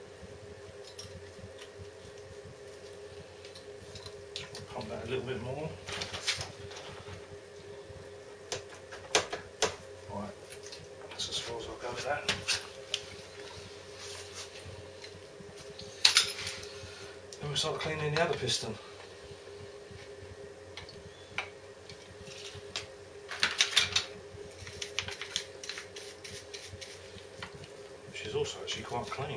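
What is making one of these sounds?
Metal tools clink and tap against metal nearby.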